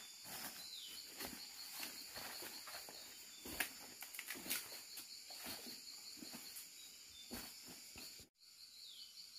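Footsteps crunch and rustle through dry leaves and undergrowth.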